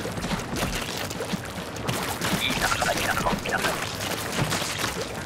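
Paint splashes and swishes in quick wet strokes.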